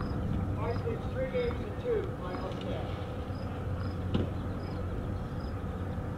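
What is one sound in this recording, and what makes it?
A tennis player bounces a ball on a hard court.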